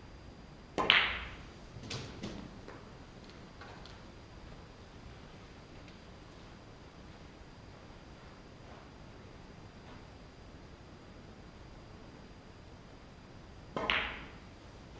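A cue strikes a ball with a sharp clack.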